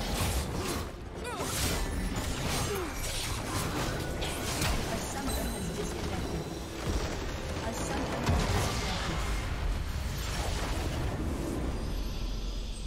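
Game spells and blasts crash and explode in a busy battle.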